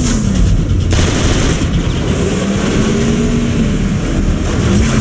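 A vehicle engine roars as a car speeds along.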